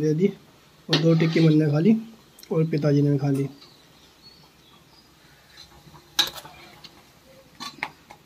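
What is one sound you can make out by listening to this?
A metal spoon scrapes against a frying pan.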